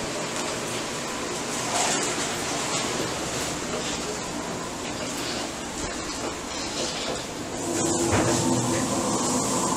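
An electric fan whirs steadily nearby.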